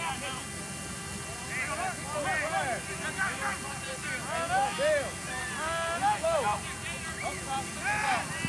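Players shout across an open field in the distance.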